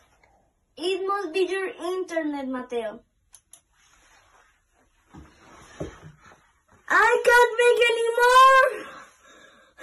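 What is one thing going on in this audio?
A young boy sings loudly and with animation close by.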